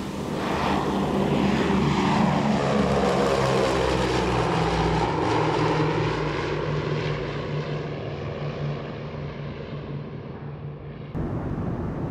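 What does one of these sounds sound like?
Propeller engines drone loudly as a plane flies low overhead, the pitch sinking as it passes and fades away.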